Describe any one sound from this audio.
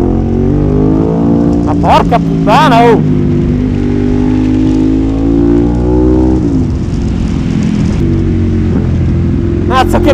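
A motorcycle engine drones loudly, rising in pitch and dropping as it shifts gears.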